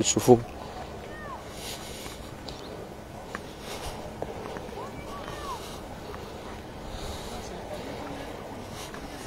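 Wind blows softly outdoors across open ground.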